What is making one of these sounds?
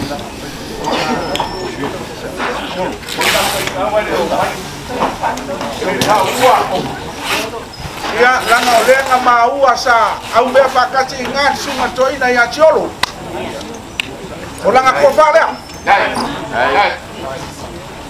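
An elderly man speaks loudly and formally outdoors, pausing between phrases.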